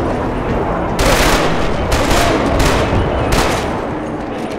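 Gunshots fire in loud bursts and echo off hard walls.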